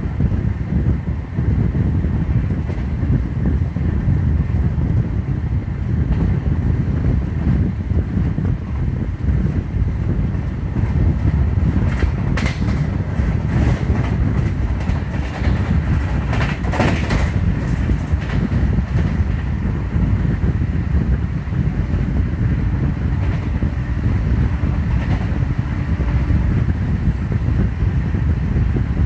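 A train rumbles and clatters along the tracks at speed.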